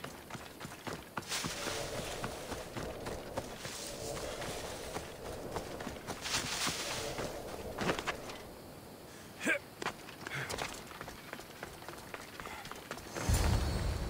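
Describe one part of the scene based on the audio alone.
Footsteps rustle through dry grass and brush.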